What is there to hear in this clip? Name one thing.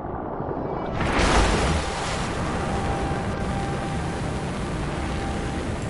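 Jet thrusters roar.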